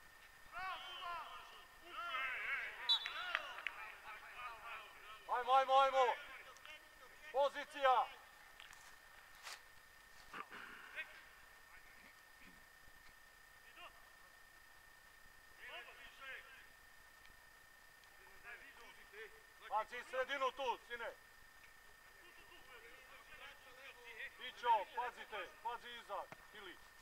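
Young men shout to each other across an open field, far off outdoors.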